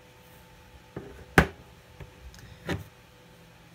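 A coin clicks against a hard table.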